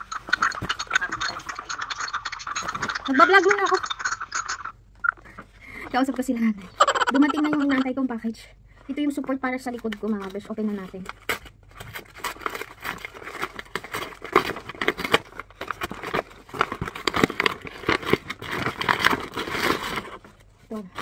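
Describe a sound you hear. Thick paper packaging crinkles and tears.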